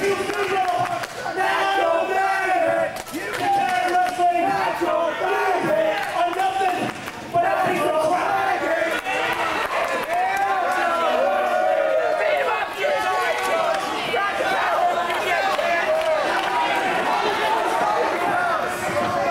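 A crowd of people shouts and chants loudly in a large echoing hall.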